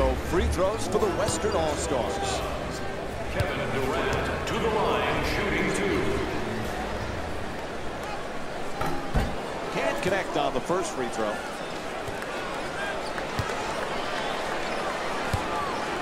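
A large crowd murmurs in an echoing arena.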